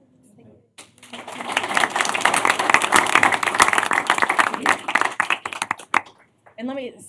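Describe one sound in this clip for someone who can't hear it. People applaud in a large room.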